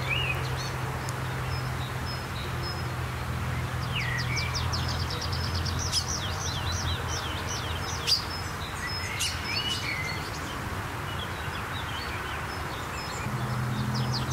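Small birds chirp and trill nearby.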